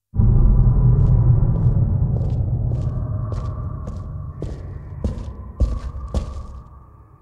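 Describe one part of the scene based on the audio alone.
Footsteps echo on a stone floor.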